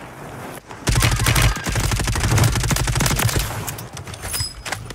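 Rapid gunfire bursts out in loud, sharp cracks.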